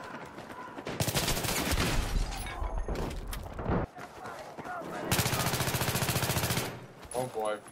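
Gunfire bursts out in rapid shots.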